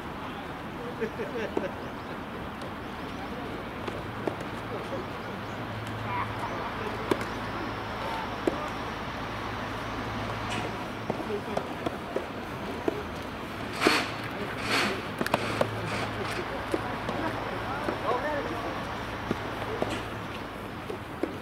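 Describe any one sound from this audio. Tennis balls pop off rackets in a rally.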